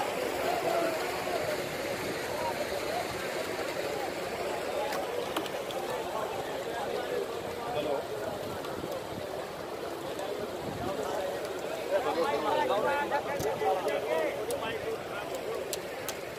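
A large crowd murmurs and chatters all around.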